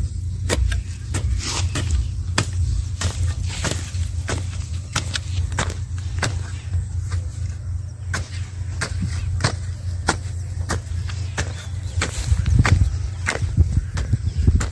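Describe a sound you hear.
A hoe chops repeatedly into hard, dry soil with dull thuds.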